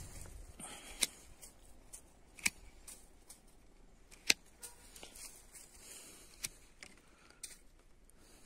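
Pruning shears snip sharply through thin branches.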